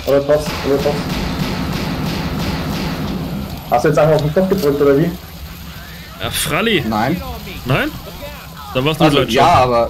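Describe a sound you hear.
Fireworks fizz and crackle.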